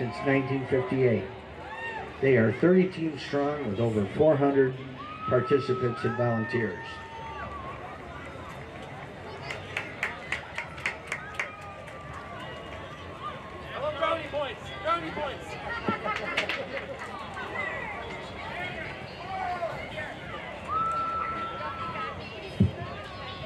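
A crowd of people chatters and cheers along a street.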